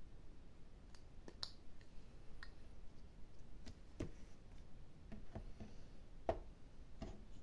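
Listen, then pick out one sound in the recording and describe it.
Small plastic pieces click and tap against a hard surface.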